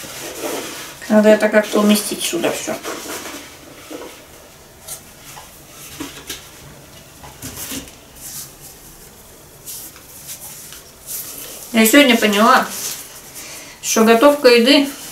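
Dough is patted and shaped by hand.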